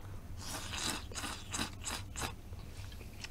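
A man slurps food from a bowl close to a microphone.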